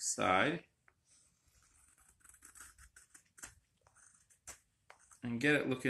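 A knife scrapes and shaves wood in short strokes.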